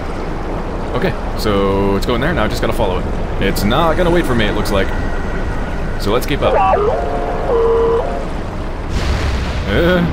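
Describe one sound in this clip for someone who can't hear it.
A small hovering robot chirps and warbles electronically.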